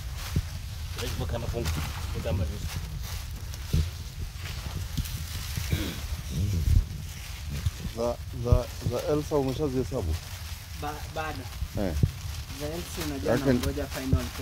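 A man talks nearby in a casual voice.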